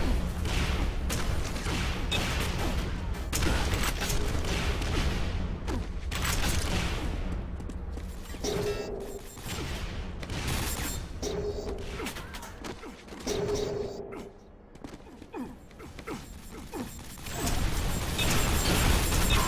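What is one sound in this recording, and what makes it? Footsteps clank quickly on metal floors.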